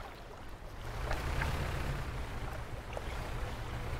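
Water splashes around a moving boat's hull.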